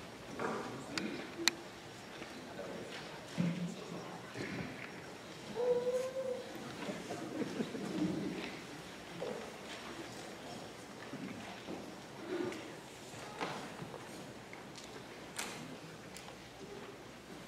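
A young woman talks casually into a microphone in a large hall.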